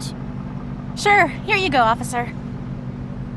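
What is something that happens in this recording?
A young woman answers calmly.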